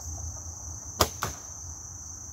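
A bowstring snaps sharply as an arrow is released.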